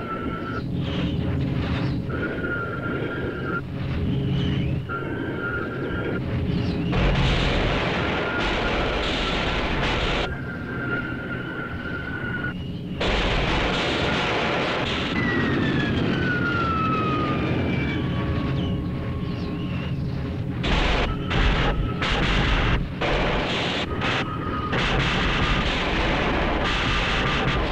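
Spacecraft engines hum and whine steadily.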